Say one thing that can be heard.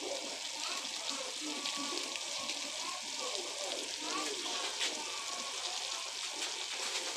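A stew bubbles and sizzles in a pan.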